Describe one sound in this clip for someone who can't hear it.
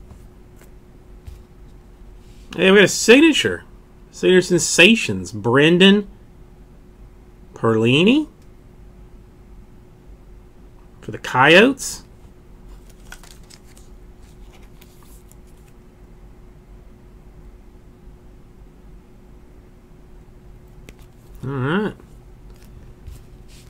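Cardboard cards rustle and slide as hands handle them.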